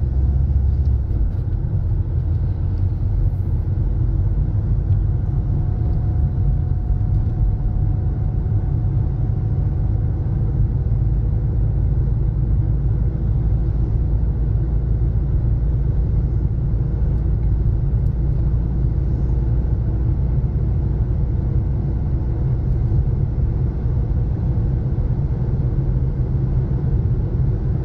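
A car engine hums steadily from inside the moving car.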